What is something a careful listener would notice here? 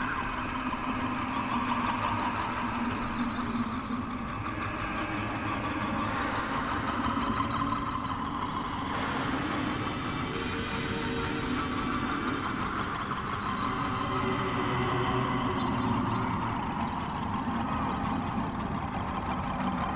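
Weapons clash and spells crackle in a fantasy battle.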